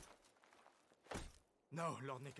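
A horse's hoof thuds on the ground.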